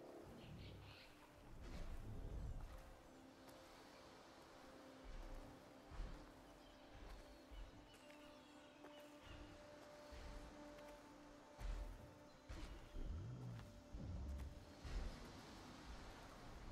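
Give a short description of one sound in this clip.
Footsteps walk steadily over stone.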